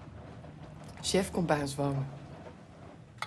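A woman speaks a few quick words close by.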